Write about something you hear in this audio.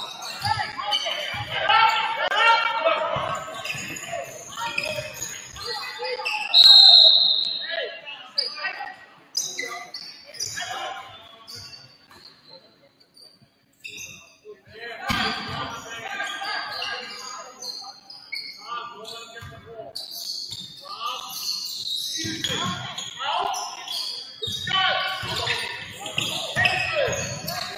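Sneakers squeak on a hardwood floor in a large echoing gym.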